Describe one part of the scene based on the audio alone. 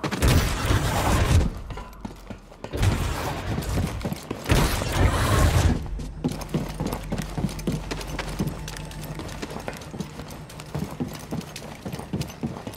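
Footsteps run quickly across a hard metal floor.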